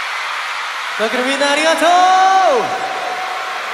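A young man sings into a microphone, heard over loudspeakers.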